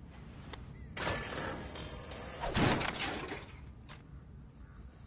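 A man scrapes and thumps against metal.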